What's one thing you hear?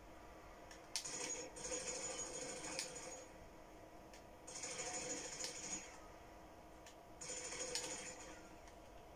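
Bursts of rifle fire ring out in quick rattling volleys.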